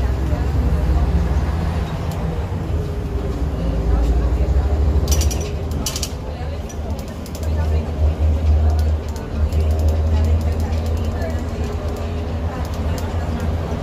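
An old diesel city bus engine drones from inside as the bus drives along a road.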